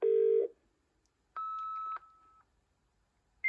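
A dial-up modem sounds short steady tones as it dials.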